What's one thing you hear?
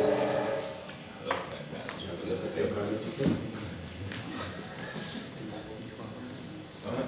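A man talks casually in a large echoing room.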